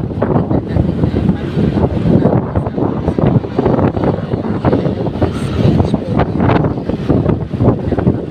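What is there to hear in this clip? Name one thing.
Strong wind rushes and buffets loudly against the microphone outdoors.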